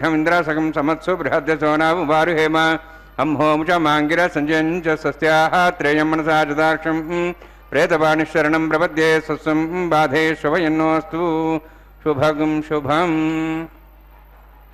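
A man chants steadily in a melodic voice through a microphone.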